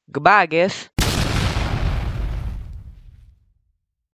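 An explosion booms and slowly fades.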